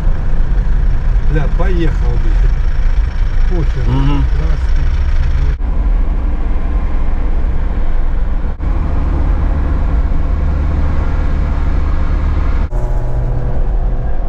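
A vehicle's engine rumbles steadily from inside the cab as it drives along.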